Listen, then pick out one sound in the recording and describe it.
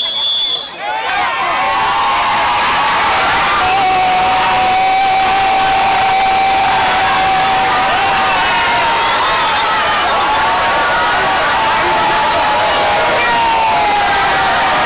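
A crowd of men and women cheers and celebrates loudly outdoors.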